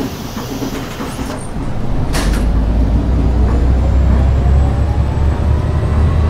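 A bus engine revs and whines as the bus pulls away.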